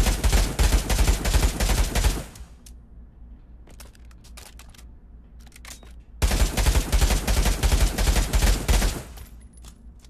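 A rifle fires rapid shots, echoing loudly.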